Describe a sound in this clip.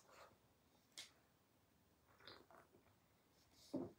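A woman slurps a drink close by.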